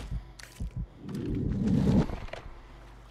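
Water splashes and churns as a body plunges in.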